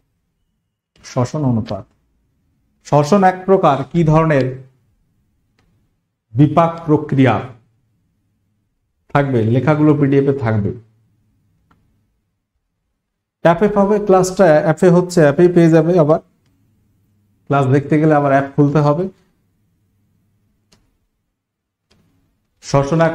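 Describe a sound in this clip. A man speaks with animation in short bursts, close to a microphone.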